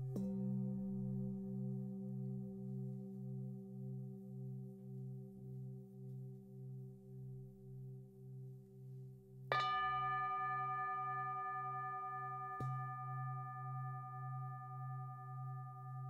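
A man strikes singing bowls, which ring out with long, wavering metallic tones.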